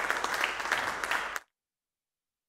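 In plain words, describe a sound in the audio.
A brass band plays loudly in an echoing hall and stops abruptly.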